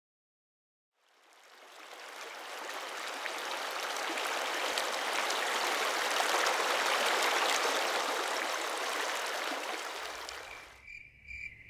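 A mountain stream rushes and splashes over rocks, close by.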